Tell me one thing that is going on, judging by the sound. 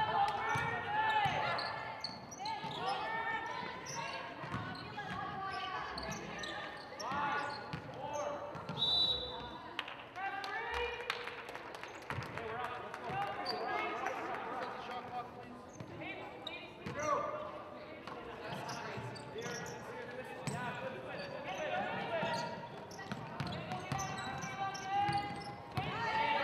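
Young women call out to each other, echoing in a large hall.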